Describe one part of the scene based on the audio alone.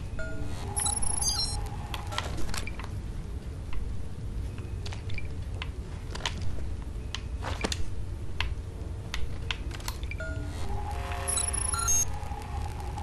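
A scanner device beeps with high electronic tones.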